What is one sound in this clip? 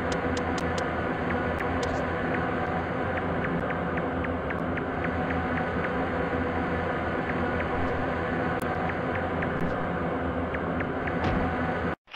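Small footsteps tap steadily.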